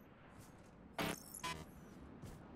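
A short electronic buzzer sounds.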